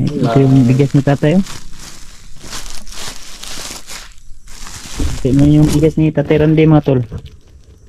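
A plastic sack crinkles and rustles close by.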